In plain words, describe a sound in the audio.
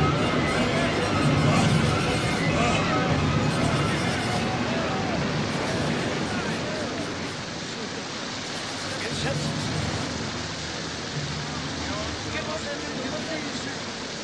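Strong wind howls.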